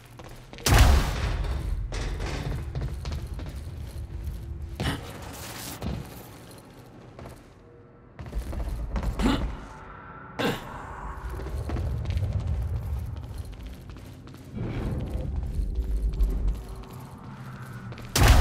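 Heavy footsteps pound on metal stairs and pavement.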